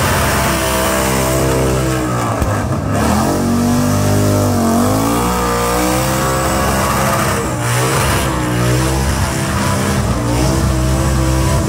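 A car engine roars loudly close by, revving up and down.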